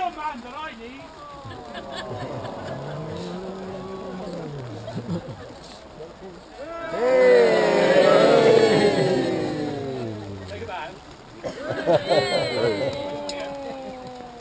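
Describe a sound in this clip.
A crowd of men and women sings together outdoors.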